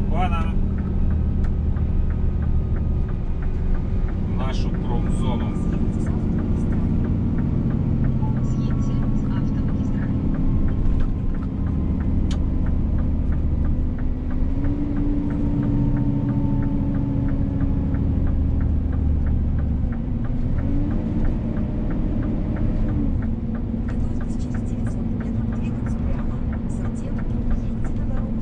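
Tyres roll on the road with a constant rumble.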